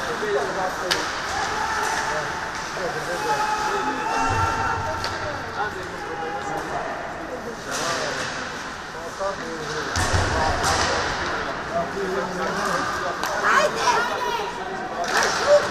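Skates scrape and hiss on ice in an echoing rink.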